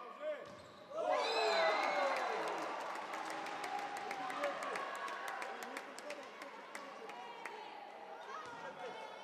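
A crowd in a large echoing hall cheers and shouts.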